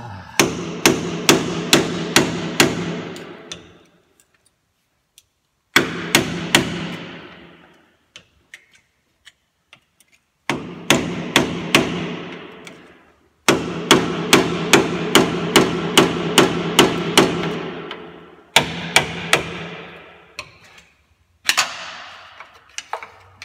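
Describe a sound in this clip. A mallet strikes metal in quick ringing blows, in bursts with pauses between.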